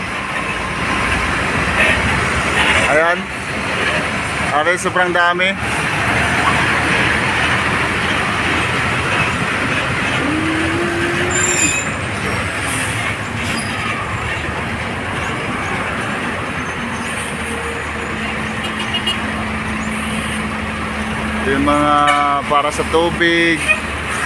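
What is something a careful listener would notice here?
Heavy trucks rumble and roar past close by on a road.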